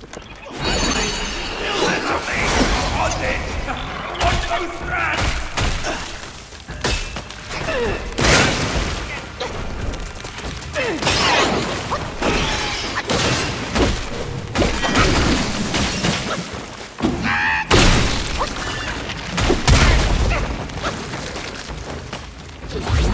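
Swords clash and strike with sharp metallic clangs.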